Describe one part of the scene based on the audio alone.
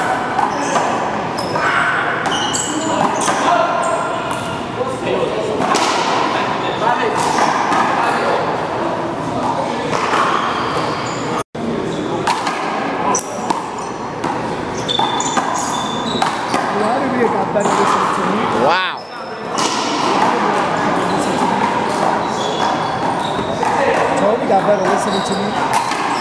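Men shout and call out in an echoing indoor court.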